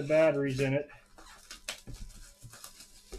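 Plastic wrap crinkles as hands handle a box.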